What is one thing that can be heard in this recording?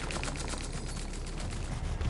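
A large winged creature buzzes and whirs through the air.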